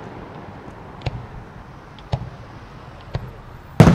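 Fireworks launch with sharp thumps.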